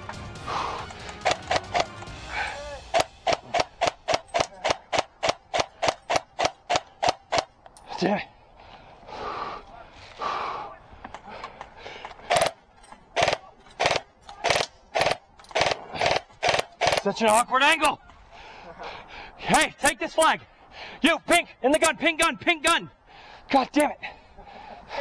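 A paintball gun fires rapid bursts of sharp pops close by.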